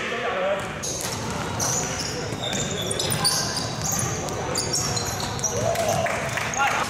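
Basketball shoes squeak sharply on a hardwood court in a large echoing hall.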